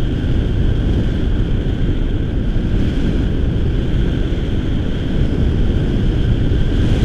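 Strong wind buffets the microphone throughout, outdoors in the open air.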